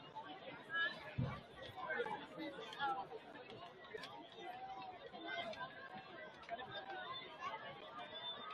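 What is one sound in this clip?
A crowd of young men and spectators chatters and calls out outdoors.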